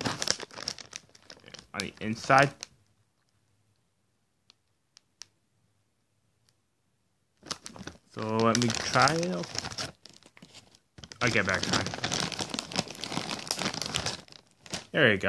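A plastic wrapper crinkles and rustles in hands.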